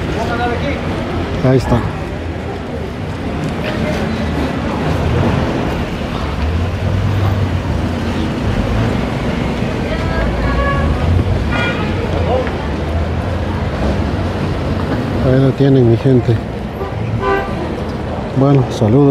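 Traffic hums steadily along a street.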